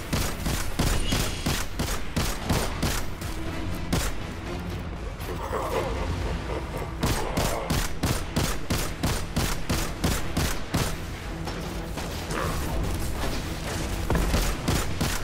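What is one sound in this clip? Rapid gunfire rings out in repeated bursts.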